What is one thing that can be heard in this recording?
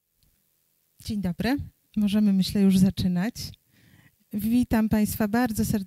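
A woman speaks into a microphone in a calm, welcoming voice.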